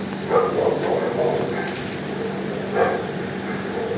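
A dog pants.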